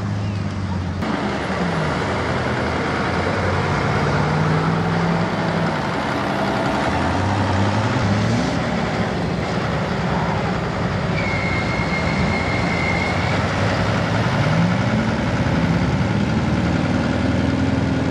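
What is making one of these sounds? An SUV engine revs as tyres churn through thick mud.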